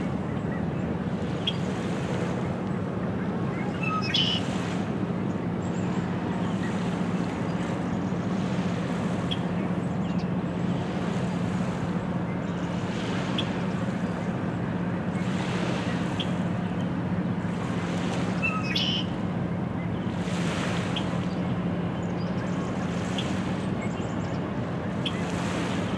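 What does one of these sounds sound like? Small waves lap gently against a rocky shore.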